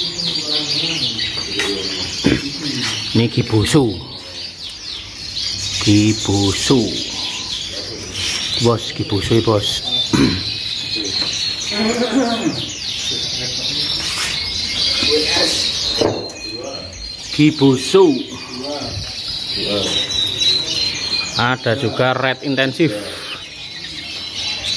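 Many canaries chirp and trill loudly and continuously.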